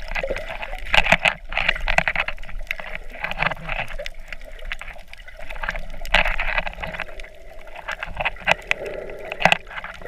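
Air bubbles gurgle as a swimmer kicks with flippers nearby.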